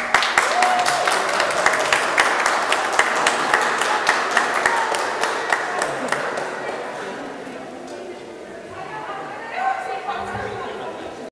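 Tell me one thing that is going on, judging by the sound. A pipe organ plays in a large echoing hall.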